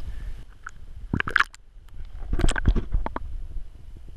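Water splashes as a fish is lowered into it.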